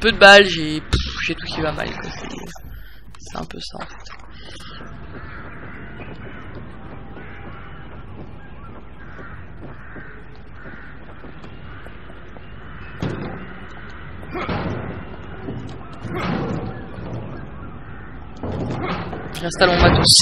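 Footsteps thud on wooden boards and stone.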